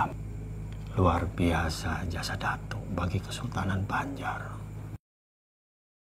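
A middle-aged man speaks in a low, grave voice.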